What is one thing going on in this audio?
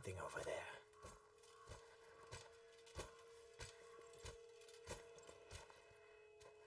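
Footsteps crunch softly through dry grass.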